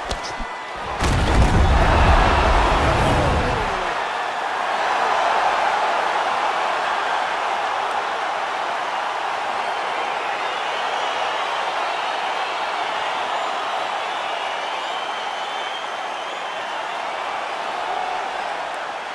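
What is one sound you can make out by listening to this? A large arena crowd cheers and roars loudly.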